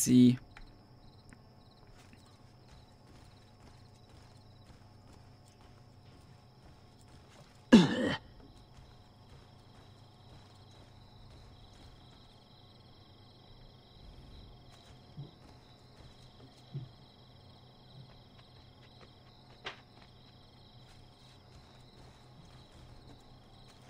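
Footsteps tread softly on roof tiles.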